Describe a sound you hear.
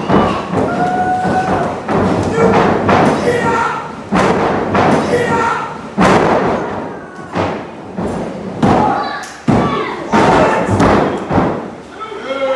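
Wrestlers slam down hard onto a ring canvas with loud thuds.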